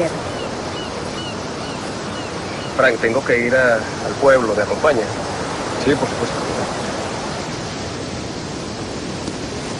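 Waves wash steadily against the shore.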